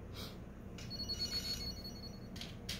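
A handheld game console plays a short, high startup chime.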